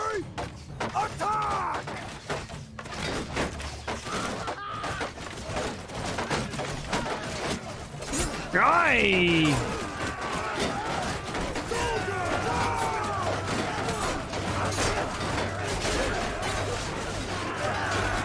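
Weapons clash and clang against shields.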